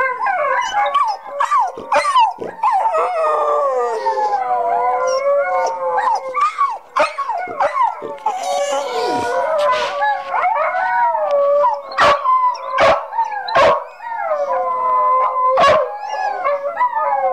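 A dog howls and whines close by, its voice rising and falling.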